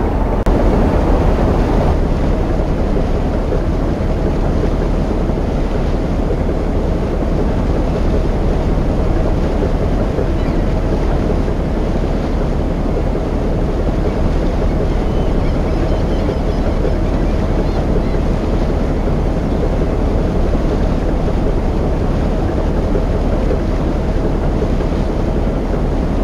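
Water splashes and churns in a boat's wake.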